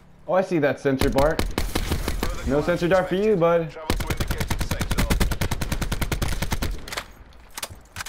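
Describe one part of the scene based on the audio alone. A rifle fires in rapid bursts at close range.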